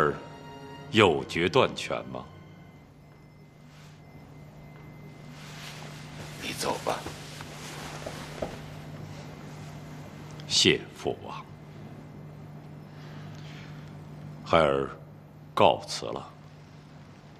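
A middle-aged man speaks quietly and calmly.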